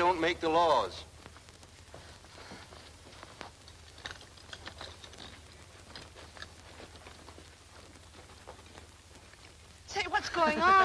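A man speaks quietly in a low voice.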